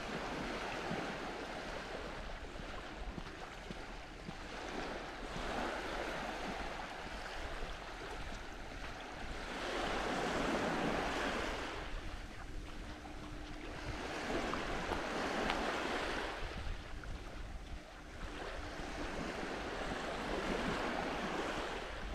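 Small waves lap and wash gently onto the shore in surges.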